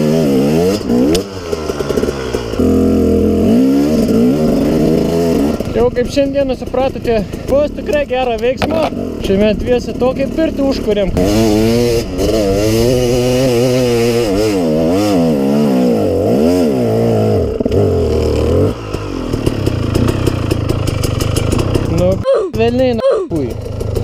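A dirt bike engine revs hard, roaring up and down close by.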